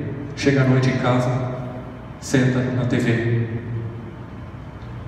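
A man speaks with emphasis into a microphone, through loudspeakers in a reverberant hall.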